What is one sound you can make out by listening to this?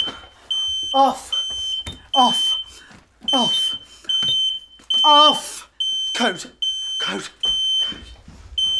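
A young man speaks loudly and excitedly close by.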